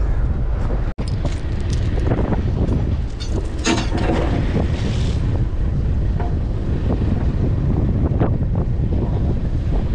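Waves splash against the hull of a moving boat.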